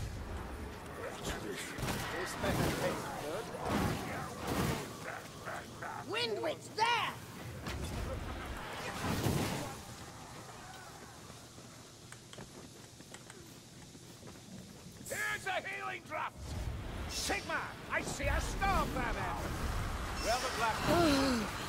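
Fiery blasts whoosh and roar.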